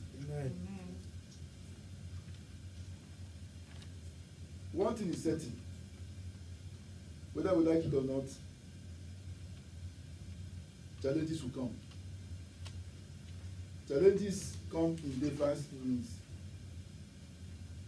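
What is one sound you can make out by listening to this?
Paper pages rustle as they are leafed through.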